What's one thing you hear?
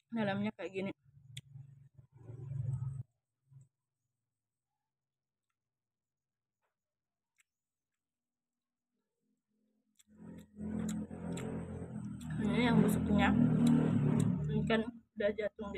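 A young woman chews and crunches food.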